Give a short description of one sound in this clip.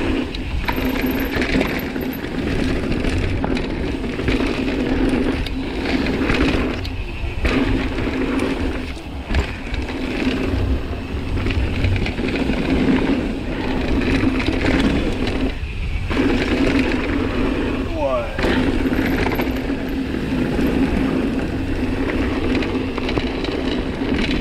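Wind rushes loudly past a rider descending a trail.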